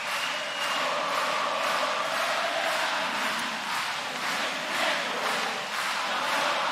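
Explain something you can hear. A large crowd cheers and screams loudly.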